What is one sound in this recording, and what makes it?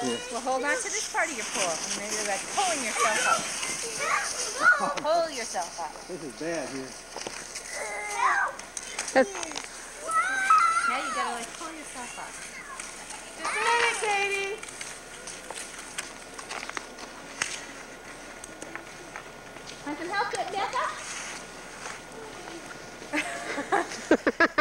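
A woman and a man talk with animation close by, outdoors.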